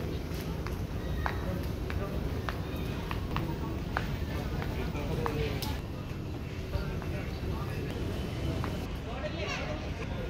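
A crowd of men and women chatter indistinctly nearby and in the distance.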